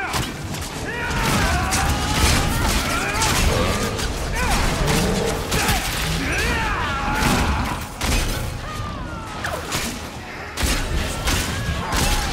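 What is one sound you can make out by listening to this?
Magical blasts whoosh and crackle.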